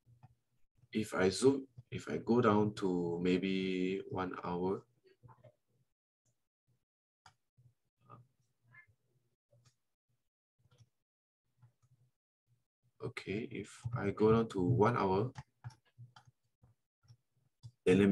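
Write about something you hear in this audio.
A man speaks calmly through a microphone, as in an online call.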